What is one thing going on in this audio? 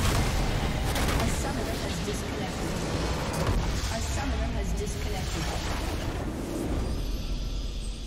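Loud magical blasts and explosions roar as a structure is destroyed.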